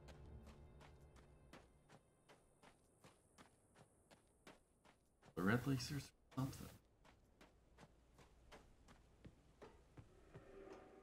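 Footsteps thud steadily on hard ground.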